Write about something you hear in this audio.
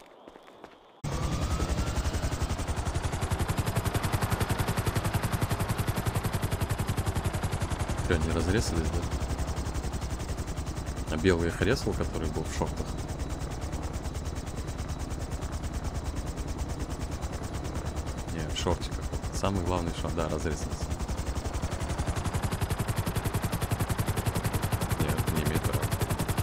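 A helicopter's rotor thumps and its engine whines loudly, close by.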